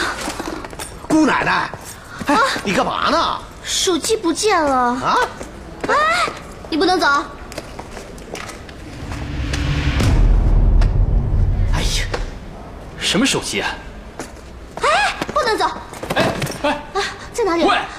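A young woman speaks close by in alarm.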